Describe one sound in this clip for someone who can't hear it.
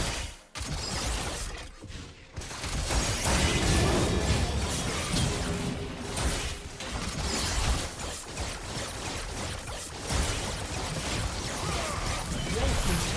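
Magic spells whoosh and crackle amid clashing blows in a fight.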